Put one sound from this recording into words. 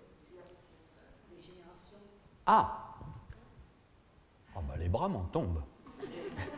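A middle-aged man speaks expressively into a microphone in a room with slight echo.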